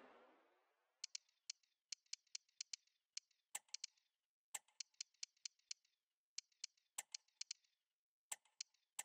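Short menu clicks tick one after another.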